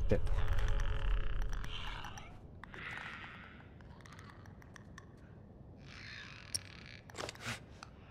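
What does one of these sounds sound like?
Footsteps tread slowly on creaking wooden floorboards.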